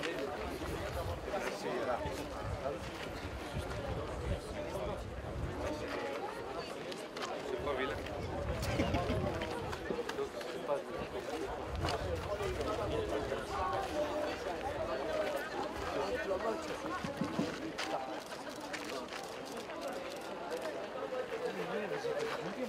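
Men talk and murmur nearby in a crowd outdoors.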